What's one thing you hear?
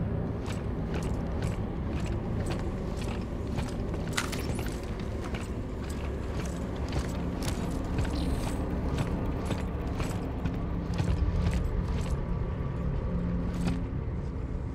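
Heavy boots thud on a hard floor at a steady walking pace.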